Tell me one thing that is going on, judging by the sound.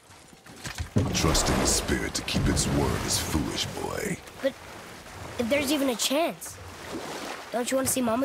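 Oars splash and churn through water.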